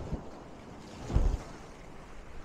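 A wave splashes hard against a sea wall.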